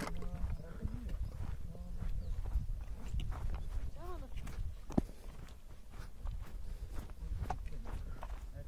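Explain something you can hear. Footsteps brush through grass.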